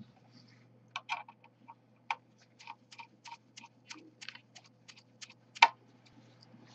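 A screwdriver scrapes and clicks in quick, repeated strokes against a hard plate.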